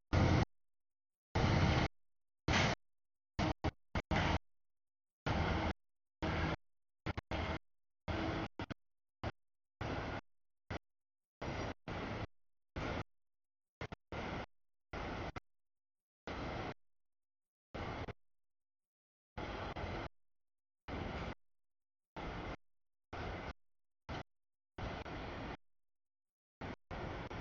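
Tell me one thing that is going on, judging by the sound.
A freight train rumbles and clatters past close by.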